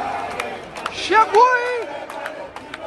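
A man shouts with excitement close by.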